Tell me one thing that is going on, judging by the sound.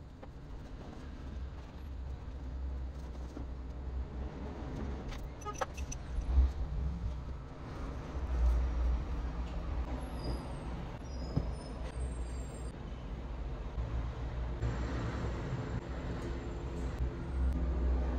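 Bedding rustles as a bed is made.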